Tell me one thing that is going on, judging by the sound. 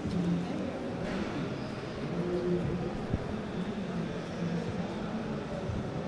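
A woman speaks through a microphone over loudspeakers.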